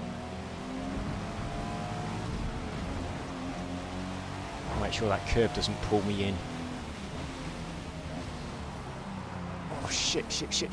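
A car engine drones steadily, rising and falling in pitch as the car speeds up and shifts gears.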